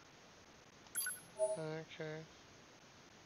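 An electronic chime sounds as a menu option is confirmed.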